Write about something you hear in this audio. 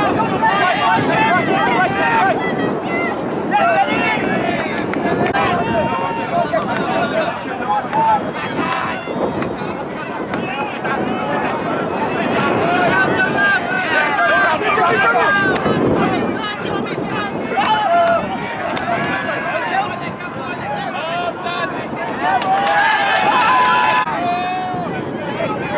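A crowd of young men and women chatters and shouts outdoors.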